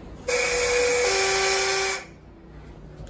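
An elevator chime rings two falling tones.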